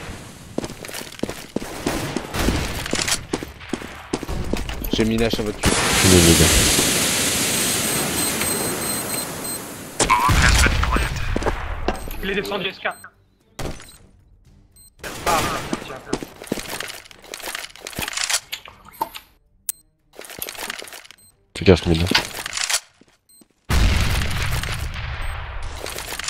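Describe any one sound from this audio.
Footsteps run on hard ground in a game.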